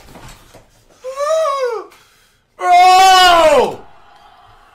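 A young man lets out loud, drawn-out shouts that fall in pitch.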